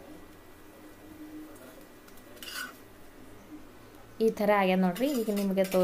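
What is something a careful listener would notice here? A metal spatula scrapes lightly against a hot pan.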